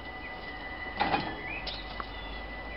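Metal couplings clank sharply as a locomotive joins a wagon.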